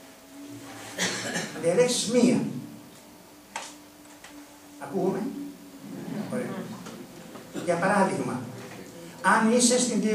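An elderly man speaks with animation into a microphone in a large hall.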